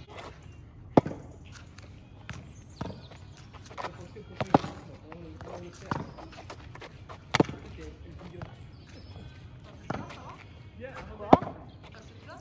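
A tennis ball pops sharply off a racket's strings now and then.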